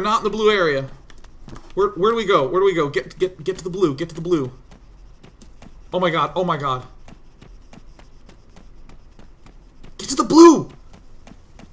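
A young man talks with animation into a close microphone, in bursts.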